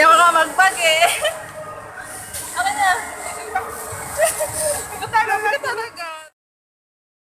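A young woman talks and laughs with excitement close by.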